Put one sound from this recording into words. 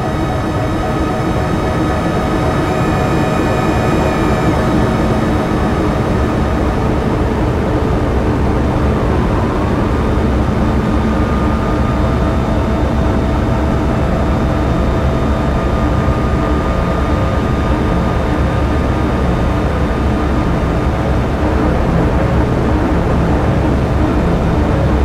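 Distorted, droning synthesizer sound plays steadily, with tones that shift as knobs are turned.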